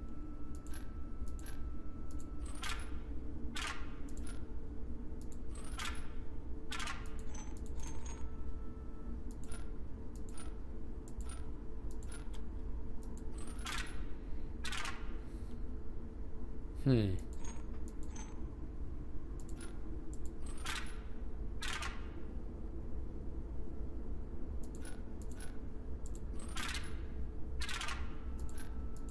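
Short electronic chimes and clicks sound as game tiles flip.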